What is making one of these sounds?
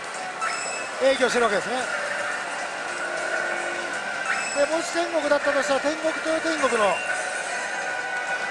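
A slot machine plays bright electronic jingles and tones.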